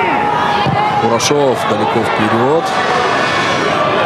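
A crowd cheers and murmurs in an open stadium.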